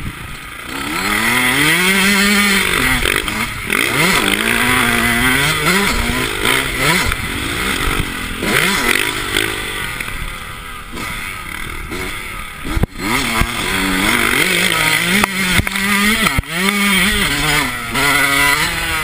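A dirt bike engine revs loudly up and down close by.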